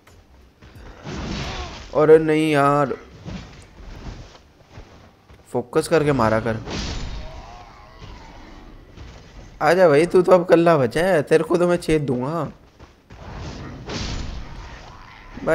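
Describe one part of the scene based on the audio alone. Swords swish and strike in quick fighting.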